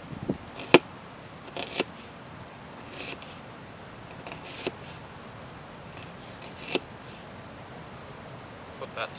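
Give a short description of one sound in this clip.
A knife chops through an onion onto a hard plastic lid with sharp knocks.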